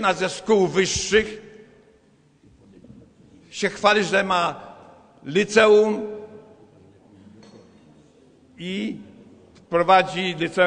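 An elderly man speaks with emphasis through a microphone in a room that echoes slightly, pausing between phrases.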